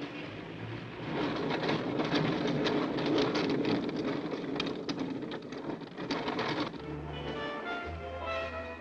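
A streetcar rumbles and rattles along its tracks.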